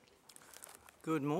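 An elderly man begins speaking into a microphone.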